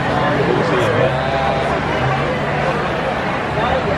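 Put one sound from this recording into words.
A middle-aged man talks cheerfully up close.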